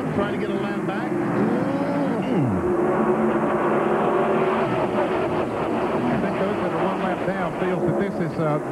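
Race car engines roar loudly as the pack speeds past.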